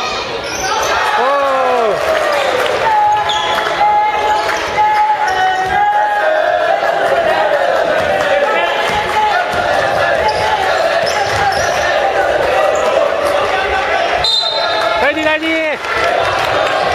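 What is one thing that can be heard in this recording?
Sneakers squeak on a wooden basketball court in an echoing gym.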